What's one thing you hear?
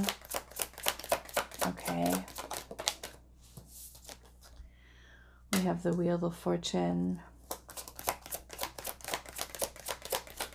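Playing cards are shuffled with quick, rapid flicking and slapping.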